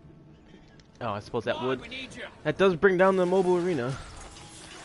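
Video game guns fire in rapid bursts.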